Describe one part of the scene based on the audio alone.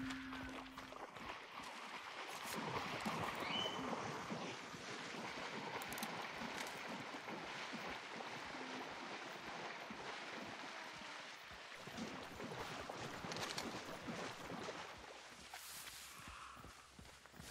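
Water splashes and swishes as someone wades through a pond.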